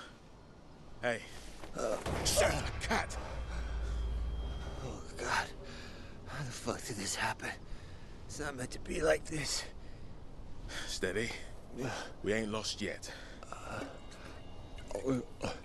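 A man speaks in a low, strained voice nearby.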